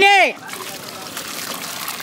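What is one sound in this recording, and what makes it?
Water pours with a splash into a pot.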